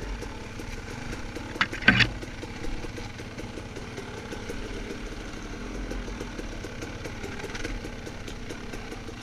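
A dirt bike engine putters steadily close by.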